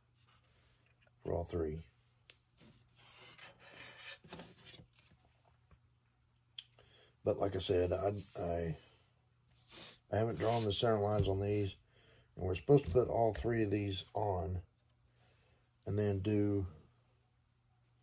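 Thin wooden pieces slide and tap on a tabletop.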